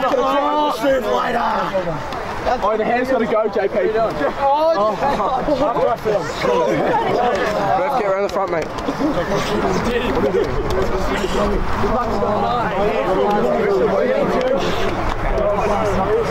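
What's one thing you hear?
Young men shout and cheer close by.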